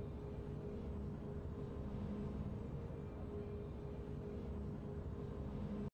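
A low, steady musical drone hums.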